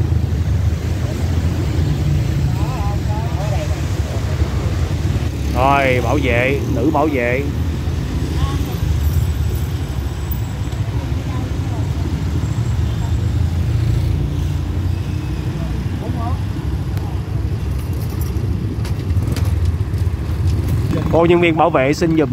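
Motorbike engines rumble on a street outdoors.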